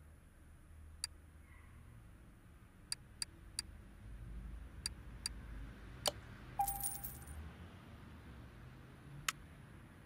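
Short electronic menu clicks sound several times.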